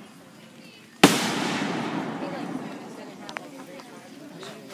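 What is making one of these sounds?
A firework bursts with a loud bang that rumbles and fades.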